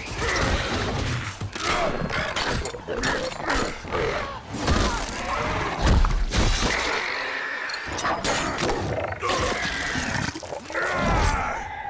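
Sea creatures shriek and screech.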